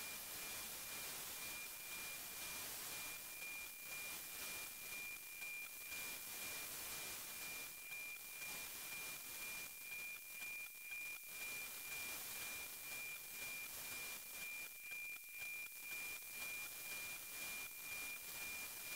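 Radio static hisses steadily through a receiver.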